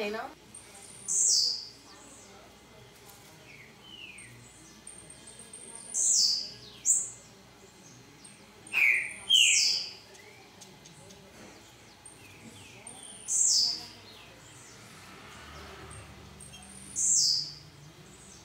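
A small bird gives short, sharp, falling chirps, repeated every few seconds.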